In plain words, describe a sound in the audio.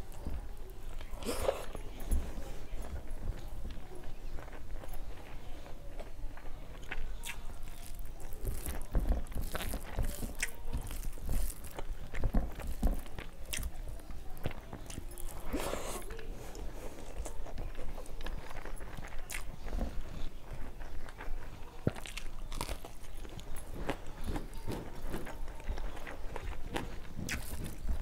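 A woman chews and smacks her lips close to a clip-on microphone.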